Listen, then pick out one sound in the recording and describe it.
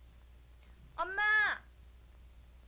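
A young girl calls out loudly nearby.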